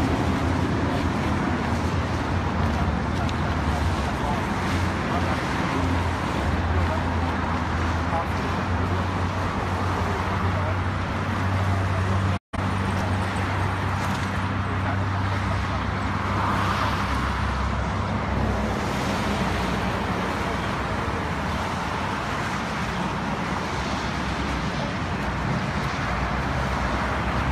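Cars and trucks roar past on a nearby road.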